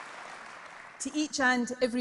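A middle-aged woman speaks firmly through a microphone and loudspeakers.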